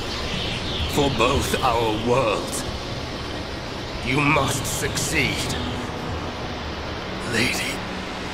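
A man speaks slowly and gravely.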